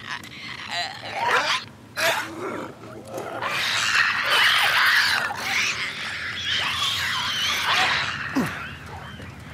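A creature shrieks and snarls close by.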